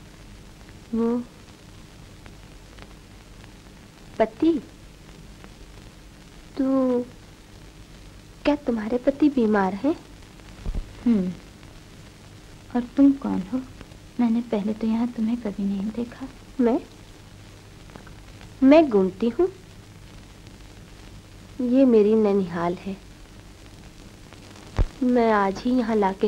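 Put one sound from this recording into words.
A young woman speaks softly and tenderly, in short phrases with pauses.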